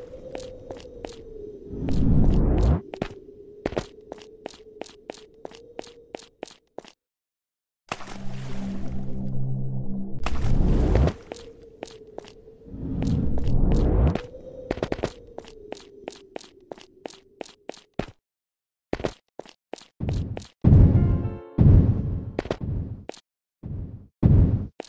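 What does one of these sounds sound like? Light footsteps patter quickly as a small figure runs.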